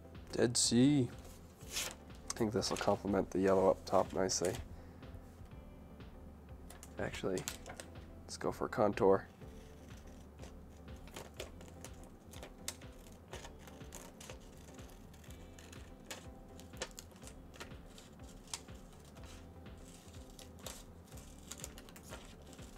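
Stickers peel and paper rustles as it is handled.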